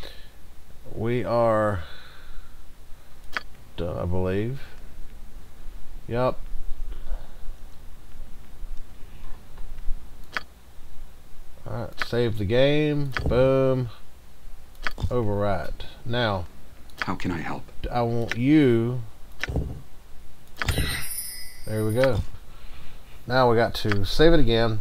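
A man talks casually into a close microphone, with pauses.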